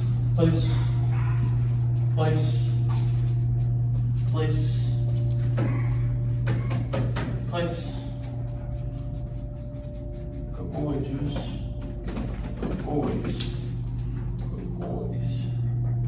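A woman talks to dogs in an upbeat voice in an echoing room.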